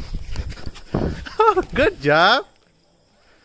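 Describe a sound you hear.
A puppy yelps in short high cries.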